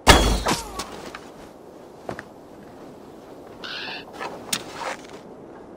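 Footsteps thud lightly on a wooden roof.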